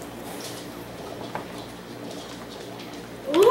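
Plastic game pieces click on a table.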